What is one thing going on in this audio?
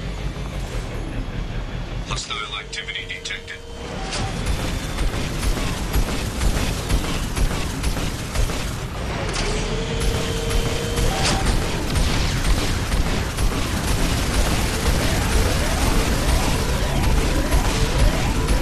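A hovering vehicle's engine roars steadily.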